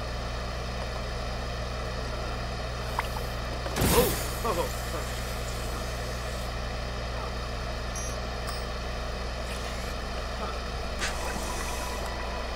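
A machine hums steadily throughout.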